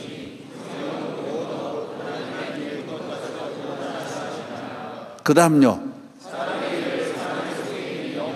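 A large crowd of men and women chatters and murmurs in a big echoing hall.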